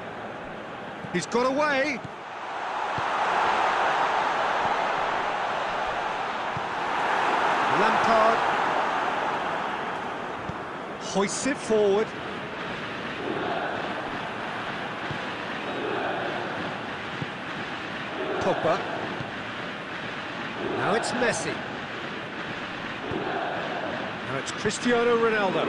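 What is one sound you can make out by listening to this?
A stadium crowd roars and swells steadily.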